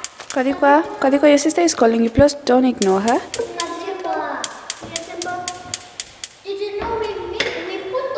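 Children talk with animation nearby.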